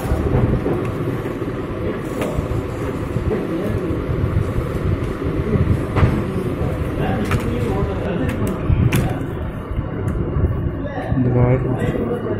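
A plastic laptop casing clicks and knocks as hands handle it.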